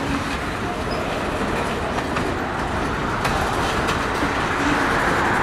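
Steel wheels click and clatter over rail joints.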